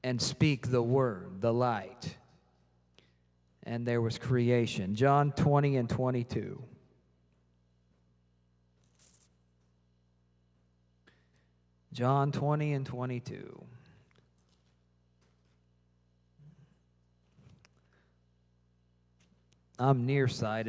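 A man speaks with feeling into a microphone, in bursts with long pauses, in a hall with some echo.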